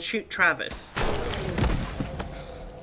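A shotgun fires once with a loud blast.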